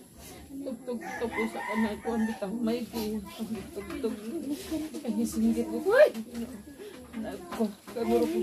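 An elderly woman speaks close by, louder and with feeling.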